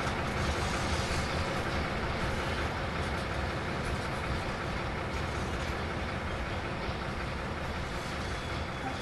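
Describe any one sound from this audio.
A diesel locomotive rumbles steadily as it pulls away with freight wagons.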